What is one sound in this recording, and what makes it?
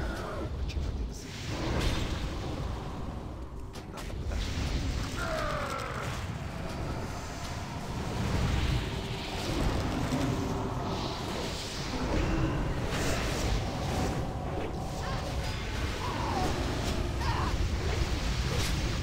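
Game spell effects crackle and whoosh during a battle.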